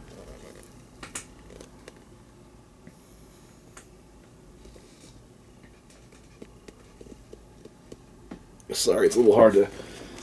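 A cardboard record sleeve rustles and taps as it is handled.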